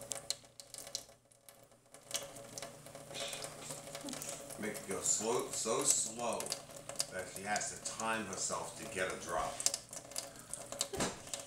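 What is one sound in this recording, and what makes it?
A thin stream of water trickles from a tap into a metal sink.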